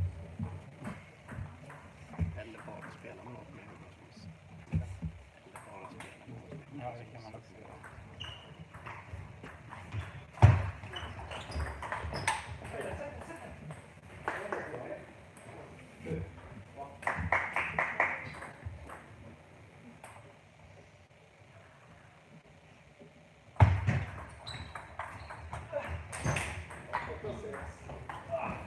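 A ping-pong ball clicks quickly back and forth off paddles and a table in an echoing hall.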